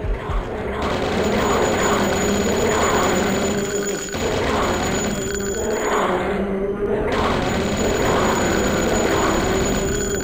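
A machine gun fires in rapid, steady bursts.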